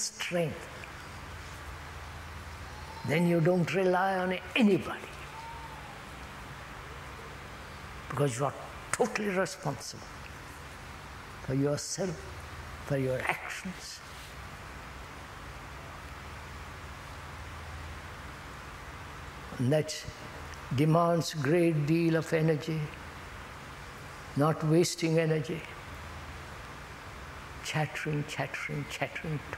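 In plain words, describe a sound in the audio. An elderly man speaks slowly and thoughtfully into a clip-on microphone, with long pauses.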